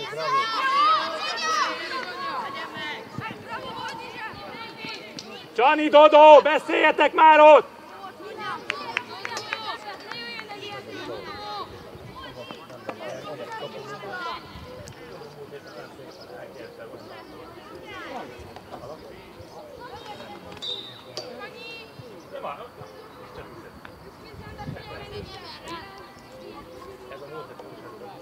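Young players shout to each other across an open field, some distance away.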